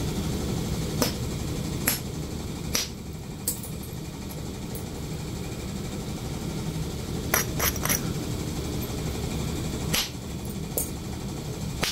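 A knife scrapes and shaves a cow's hoof.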